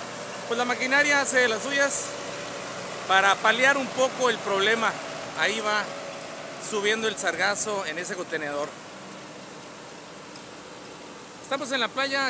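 A tractor engine idles and rumbles close by.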